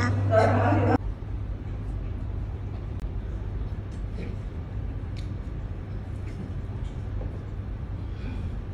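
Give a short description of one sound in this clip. Quiet murmuring and soft clicks fill a large hall.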